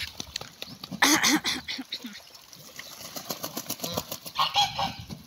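Ducks quack.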